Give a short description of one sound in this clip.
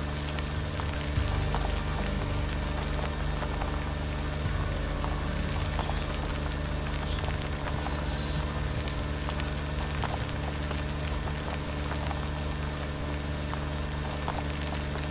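A car rattles and bumps over a rough road.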